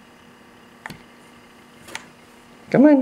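A light switch clicks as it is flipped.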